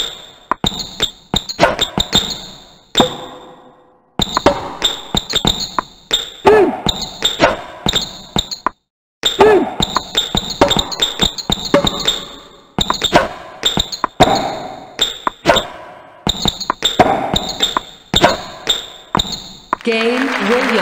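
Tennis balls are struck back and forth with sharp pops.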